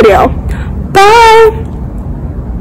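A young woman speaks briefly and cheerfully, close by.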